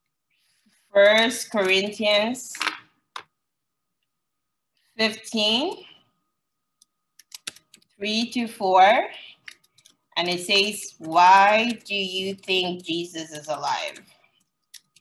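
A woman speaks calmly over an online call, in short phrases with pauses.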